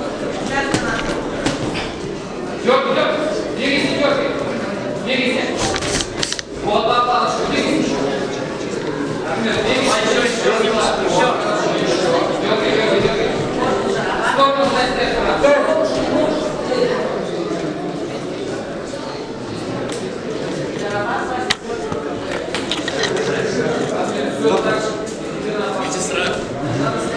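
A crowd of spectators talks and shouts in an echoing hall.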